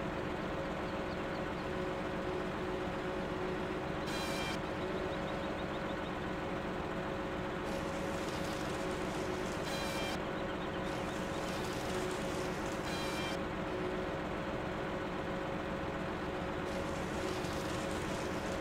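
A heavy machine engine hums steadily throughout.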